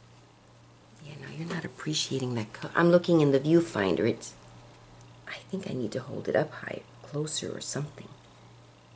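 An older woman talks calmly close by.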